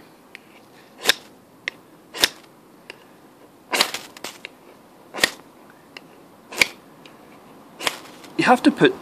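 A metal striker scrapes sharply along a fire steel rod, again and again.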